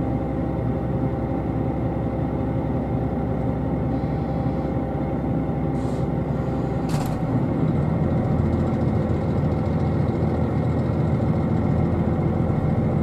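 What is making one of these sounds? A train engine hums and rumbles steadily, growing louder as the train starts to move.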